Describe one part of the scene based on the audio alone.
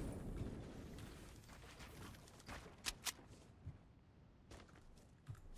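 Footsteps patter quickly in a video game.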